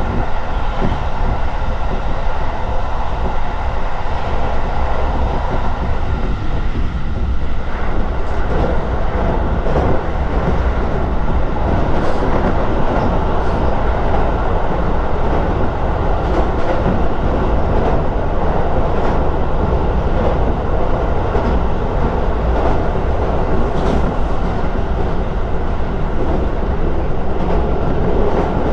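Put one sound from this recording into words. A train rumbles and rattles steadily along the tracks.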